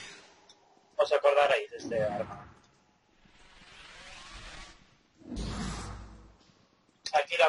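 A heavy hammer lands with dull thuds.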